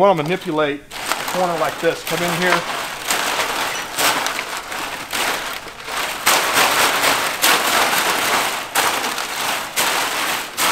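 Dry thatch leaves rustle and scrape as they are handled.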